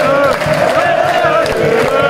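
Fans clap their hands nearby.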